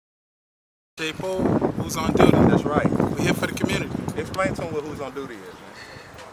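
A man talks with animation close to the microphone, outdoors.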